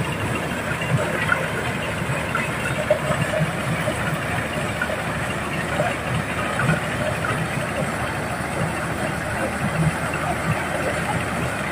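A motor-driven corn sheller rattles and roars steadily.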